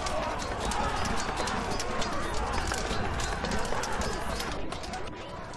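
Metal weapons clash and clang in a large battle.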